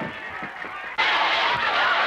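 A crowd shouts and clamours outdoors.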